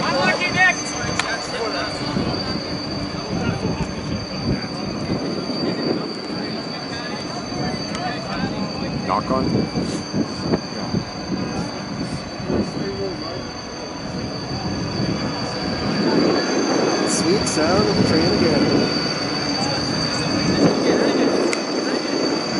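Players shout and call out across an open field in the distance.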